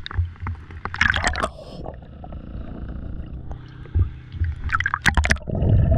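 Water laps against a boat hull.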